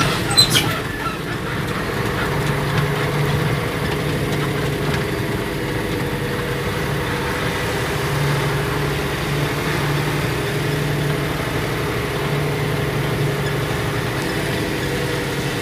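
A vehicle's engine hums as it drives.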